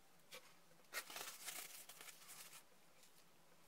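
Hair rustles softly as a young woman runs her fingers through it.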